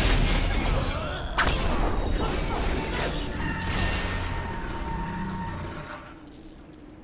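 Magic blasts and weapon strikes crash and boom in quick bursts.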